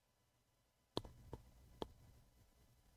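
A man's hand knocks against a close microphone a few times.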